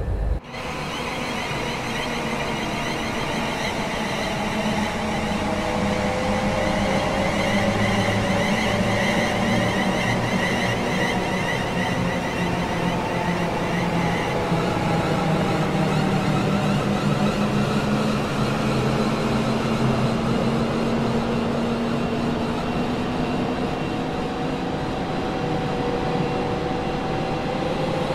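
An electric train's motors whine and rise steadily in pitch as the train pulls away.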